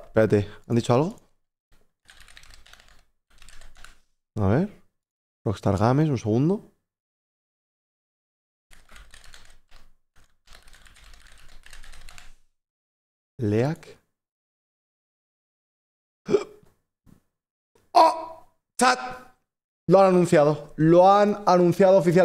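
A young man speaks with animation into a close microphone, pausing often.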